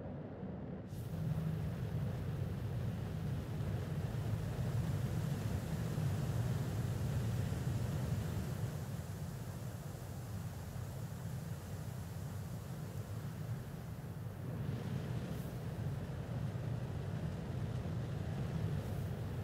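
Jet thrusters roar loudly as a spacecraft flies past outside.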